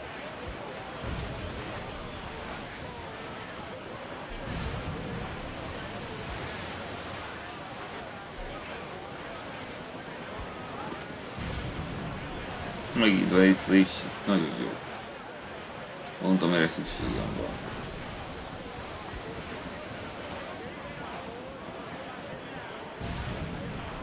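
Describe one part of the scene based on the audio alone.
Rough sea waves wash against a sailing ship's hull.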